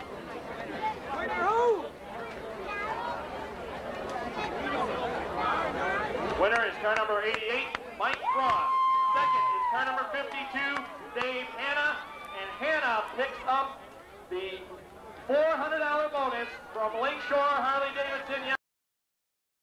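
A crowd of spectators cheers and chatters close by, outdoors.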